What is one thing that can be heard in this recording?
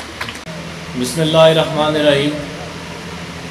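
A man speaks loudly into a microphone over a loudspeaker.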